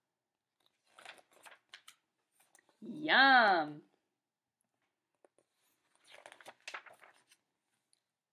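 Paper pages rustle as a book is turned.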